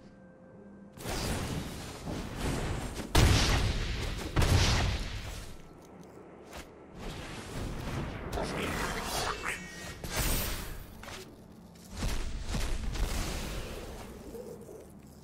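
Magical sound effects whoosh and burst in short swells.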